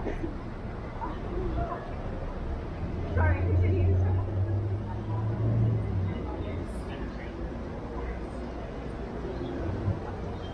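Voices murmur faintly outdoors.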